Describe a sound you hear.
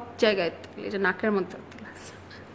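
A young woman speaks close up, sounding upset.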